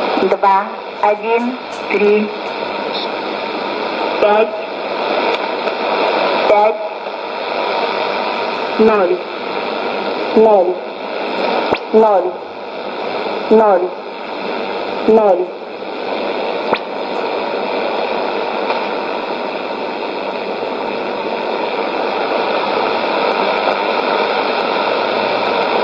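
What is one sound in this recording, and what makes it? A radio hisses with steady static through its small speaker.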